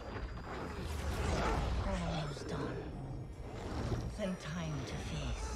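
A woman speaks in a low, menacing voice.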